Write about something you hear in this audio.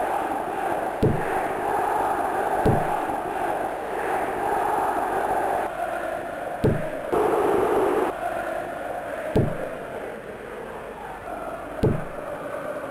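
A football is kicked with dull thuds, again and again.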